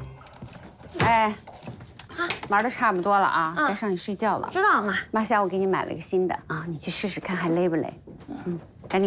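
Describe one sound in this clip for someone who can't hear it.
A middle-aged woman speaks calmly and warmly close by.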